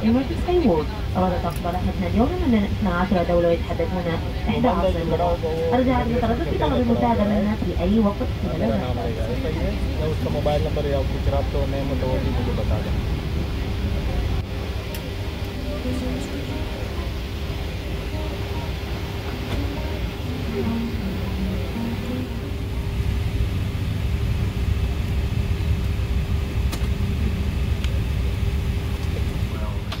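A low steady rumble of an aircraft cabin hums throughout.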